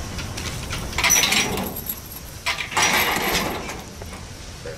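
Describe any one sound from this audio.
A metal gate rattles against a clinking chain.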